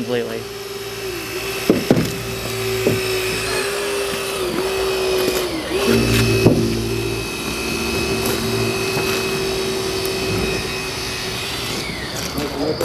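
A hydraulic rescue tool's power unit drones steadily.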